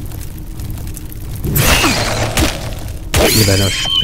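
A giant spider screeches as it attacks.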